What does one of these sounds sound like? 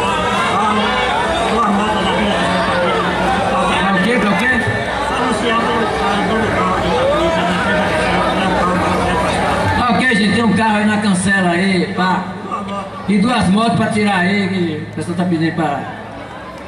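A young man talks into a microphone over loudspeakers.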